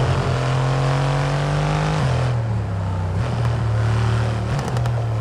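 A V8 sports car engine accelerates through gear changes.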